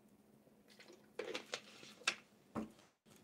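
A young woman gulps water from a bottle.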